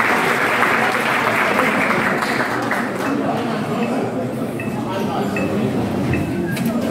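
A crowd of young people chatters in a large echoing hall.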